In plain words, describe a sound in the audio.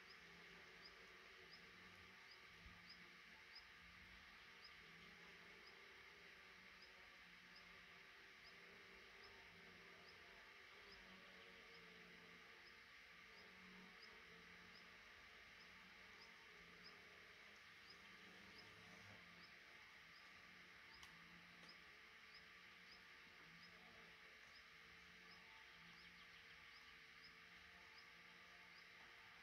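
Baby birds cheep softly and steadily close by.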